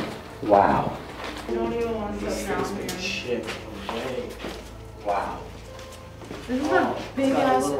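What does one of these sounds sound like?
Footsteps shuffle on stairs.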